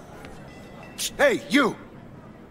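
A man calls out in a friendly voice.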